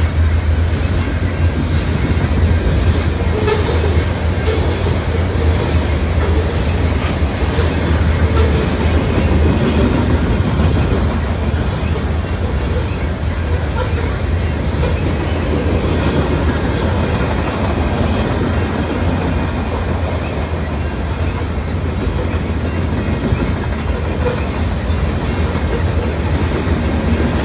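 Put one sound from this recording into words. A long freight train rumbles and clatters steadily past nearby.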